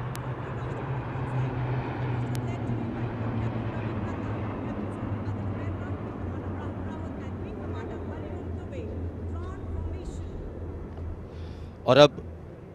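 Propeller aircraft drone steadily overhead.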